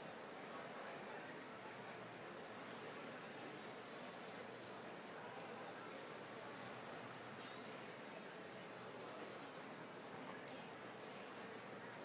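A crowd murmurs in a large hall.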